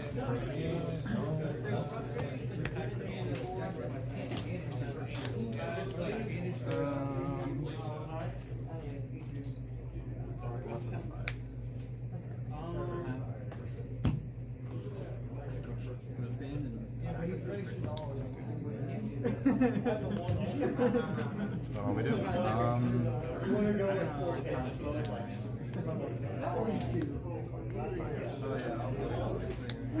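Playing cards slap and slide on a table.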